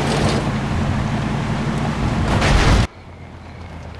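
A car engine roars loudly as the car drives along.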